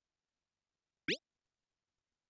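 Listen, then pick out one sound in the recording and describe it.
A quick rising swoosh sounds as a reply message is sent.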